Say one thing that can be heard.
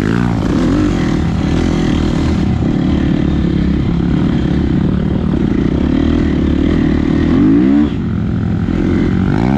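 A dirt bike engine roars close by, revving up and down.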